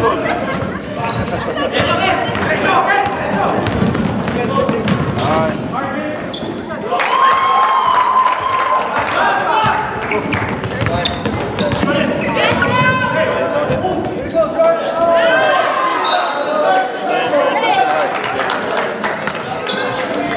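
Young men shout to each other in a large echoing gym.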